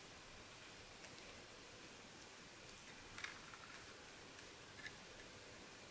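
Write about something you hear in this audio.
Paper rustles and taps softly as it is pressed and handled.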